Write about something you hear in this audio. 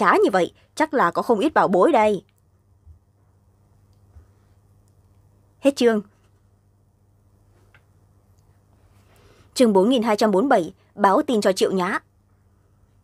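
A young woman speaks into a close microphone in short bursts, with animation.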